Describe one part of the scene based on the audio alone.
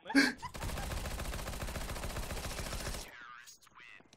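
A gun fires in a rapid, steady burst.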